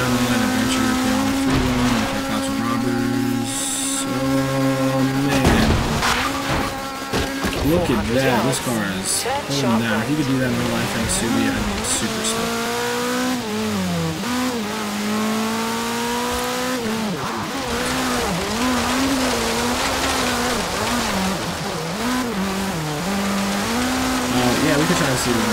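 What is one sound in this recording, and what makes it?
A rally car engine revs hard and shifts gears, rising and falling in pitch.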